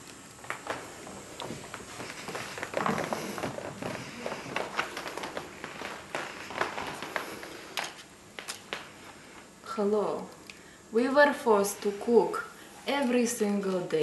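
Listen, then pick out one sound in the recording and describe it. Playing cards click and shuffle softly.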